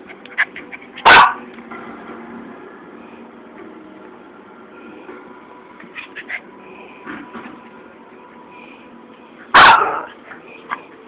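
A small dog barks sharply.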